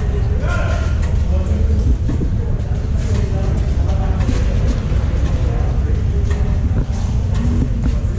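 People chat in the distance in a large echoing hall.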